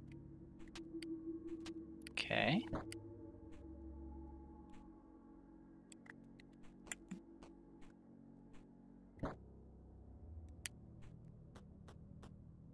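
Soft electronic game music plays steadily.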